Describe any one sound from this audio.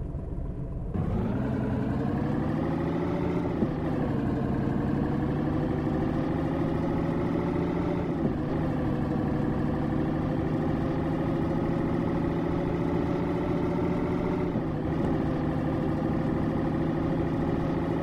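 A truck engine revs and roars as the truck drives off, shifting gears.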